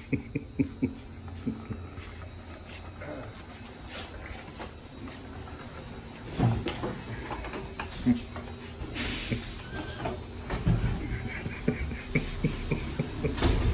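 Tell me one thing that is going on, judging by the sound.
A wooden board on a wheeled dolly knocks and rattles as it is pushed over a hard floor.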